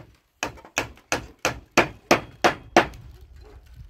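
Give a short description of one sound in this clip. A hammer taps sharply on wood in quick blows.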